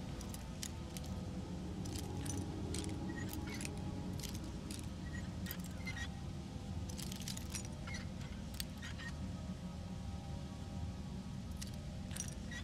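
A lock pick scrapes and clicks against the pins of a lock.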